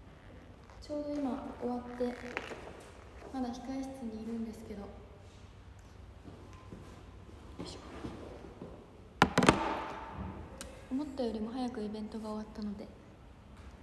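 A young woman speaks brightly and close by.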